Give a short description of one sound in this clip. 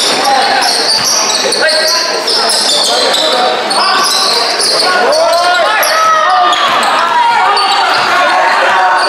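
Spectators shout and cheer nearby in an echoing hall.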